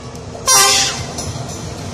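A train horn blares briefly.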